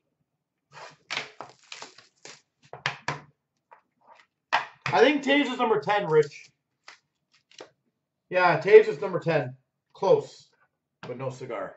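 Hands handle and set down small cardboard boxes with soft taps.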